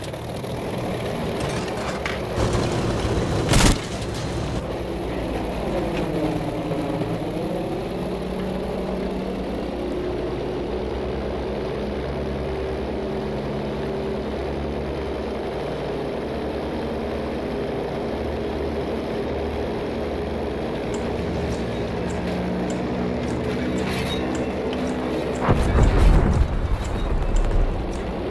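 Propeller engines drone steadily with a low hum.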